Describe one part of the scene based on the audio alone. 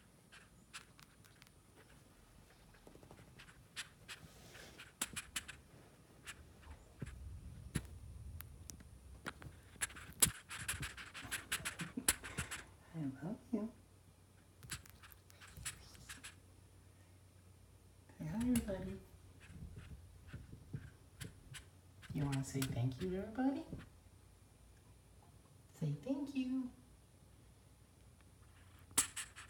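Small claws scratch and tap on fabric.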